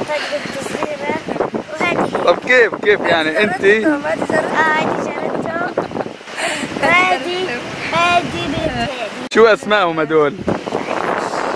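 A girl talks and laughs close by.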